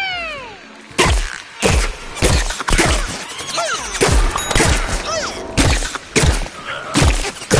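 A cannon fires loud booming shots again and again.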